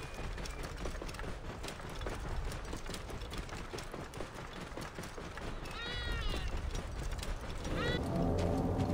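A camel's hooves plod softly on sand.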